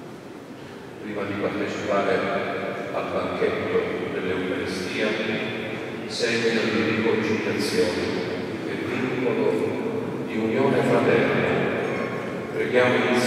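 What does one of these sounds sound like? A group of men sings slowly in a large echoing hall.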